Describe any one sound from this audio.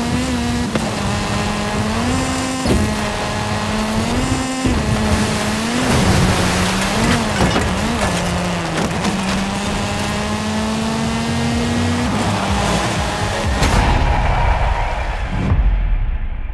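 A rally car engine revs hard and shifts up through the gears.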